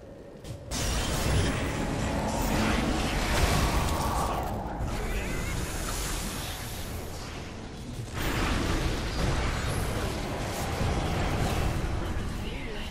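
Magic blasts crackle and boom in a fierce fight.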